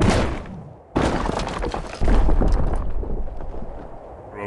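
A boulder crashes into stone blocks, which tumble and rumble.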